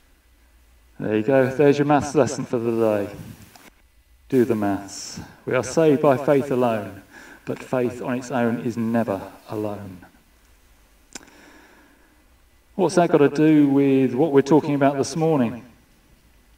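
A middle-aged man speaks calmly into a microphone in a large room with slight echo.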